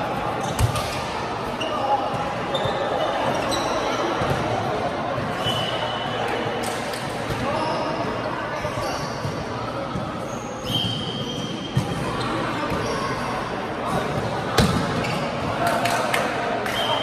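Adult men and women call out and chatter around the hall.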